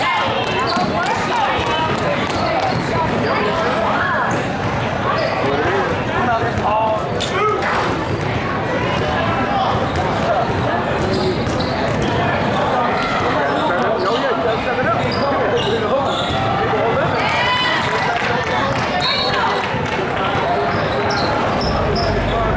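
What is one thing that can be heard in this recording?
A basketball bounces on the court.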